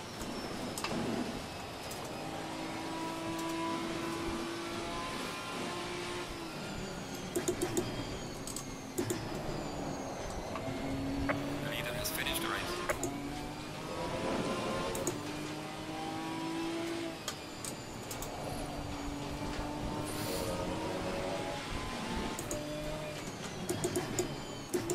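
A racing car engine revs up and down as it shifts gears.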